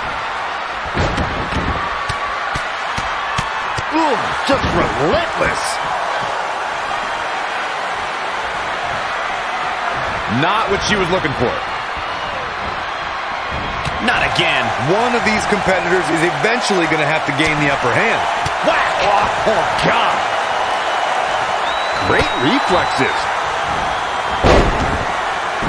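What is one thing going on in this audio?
Wrestlers' bodies thud heavily onto the ring mat.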